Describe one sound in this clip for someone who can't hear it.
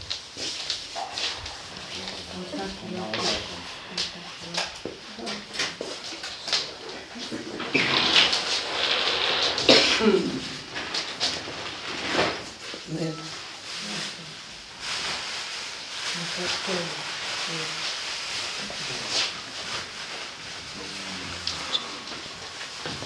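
Women talk quietly nearby.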